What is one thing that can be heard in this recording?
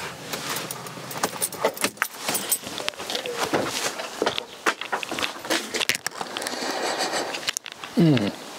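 A man rummages and clinks metal parts in an engine bay.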